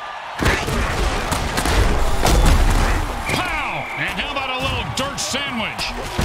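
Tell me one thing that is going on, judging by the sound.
Heavy bodies crash together in hard tackles.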